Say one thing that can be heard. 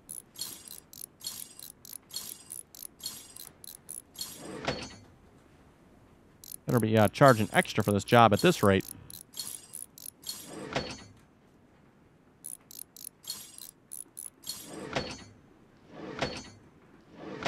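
A ratchet wrench clicks rapidly on metal bolts.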